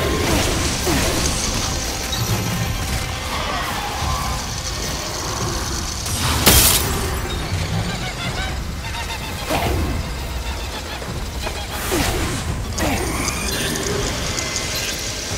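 Magic spells crackle and fizz in bursts.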